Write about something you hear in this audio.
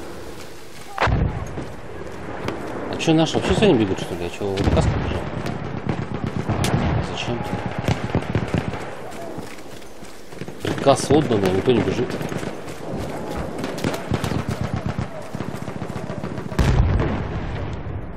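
A machine gun fires short, loud bursts.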